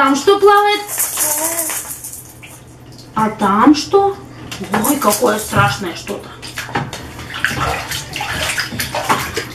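Water splashes and trickles in a bathtub.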